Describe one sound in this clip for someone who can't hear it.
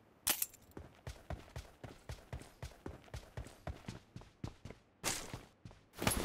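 Footsteps thud quickly on a metal walkway.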